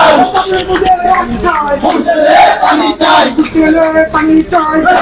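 A crowd of young men shouts and chants loudly outdoors.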